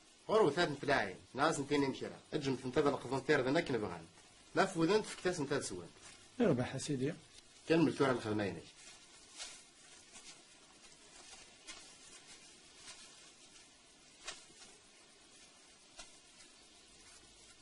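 Dry grass rustles underfoot.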